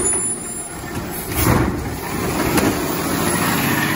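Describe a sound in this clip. A plastic bin clatters down onto the ground.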